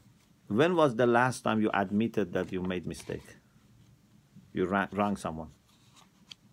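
A middle-aged man speaks calmly and close to the microphone, in short bursts with pauses.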